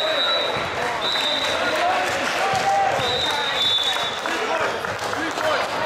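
A crowd of young men and spectators chatter and shout in a large echoing gym.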